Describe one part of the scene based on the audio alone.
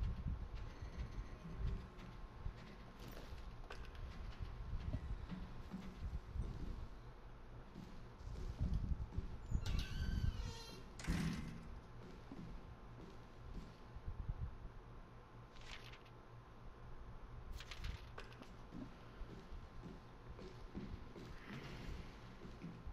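Footsteps thud slowly on a gritty floor.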